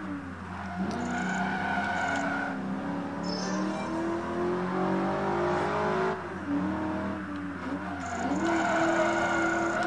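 Tyres squeal as a car brakes hard and drifts.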